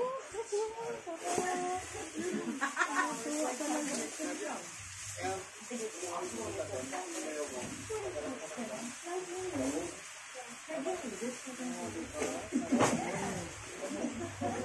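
Cloth rubs and rustles against the microphone.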